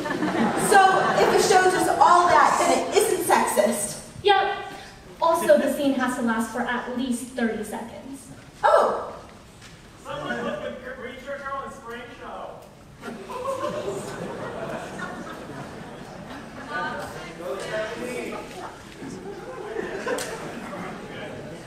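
A second young woman answers, heard from a distance in an echoing hall.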